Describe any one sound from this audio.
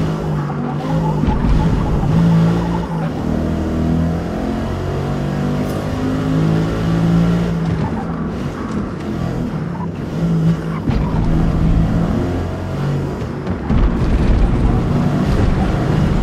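A car engine roars loudly, revving up and down as the gears shift.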